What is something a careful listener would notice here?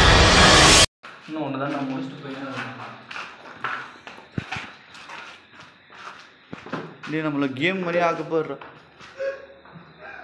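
Footsteps scuff on a gritty floor.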